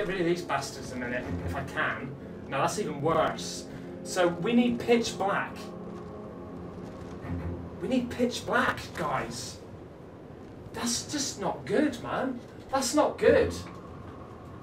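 A young man talks with animation, close by.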